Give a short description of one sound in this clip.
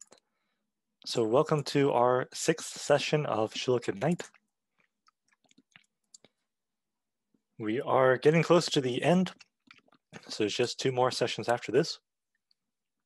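A man speaks calmly through a microphone on an online call, pausing between phrases.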